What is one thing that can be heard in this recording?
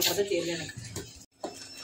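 A spoon stirs thick batter in a metal pot.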